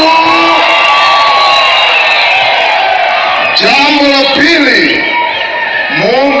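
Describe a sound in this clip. A large outdoor crowd of men and women sings and chants loudly together.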